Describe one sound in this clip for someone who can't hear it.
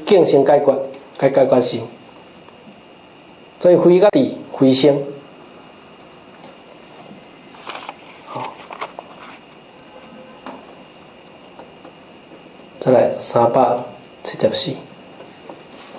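A middle-aged man speaks calmly through a microphone, in short bursts with long pauses.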